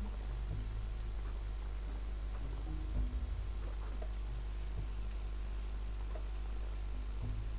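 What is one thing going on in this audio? Small footsteps patter across a wooden bridge.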